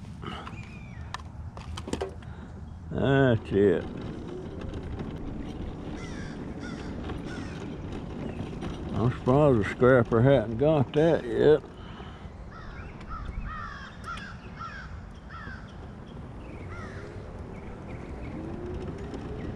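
An electric scooter motor whirs as the scooter rolls along.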